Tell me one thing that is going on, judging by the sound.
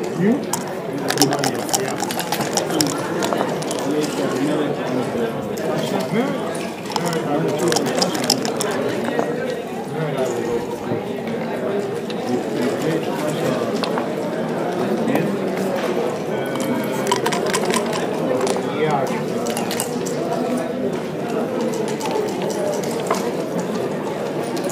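Plastic checkers click and slide across a wooden board.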